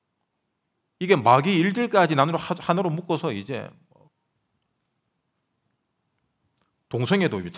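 A young man speaks earnestly into a microphone.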